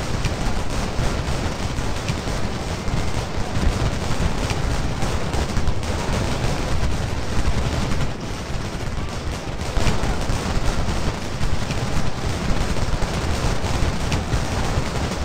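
Muskets fire in rattling volleys.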